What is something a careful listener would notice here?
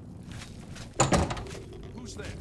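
A heavy wooden door bangs open.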